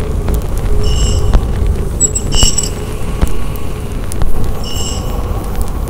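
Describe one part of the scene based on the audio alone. Glassware clinks lightly.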